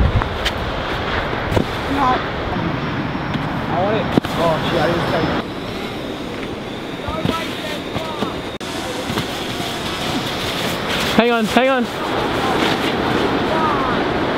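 A sandboard slides down loose sand with a hiss.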